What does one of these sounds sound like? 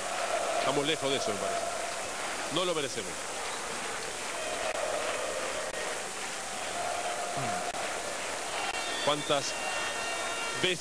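A crowd of spectators murmurs softly in a large open space.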